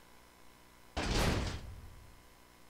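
A heavy metal door slams shut with a loud bang.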